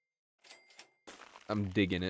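A short magical chime sounds.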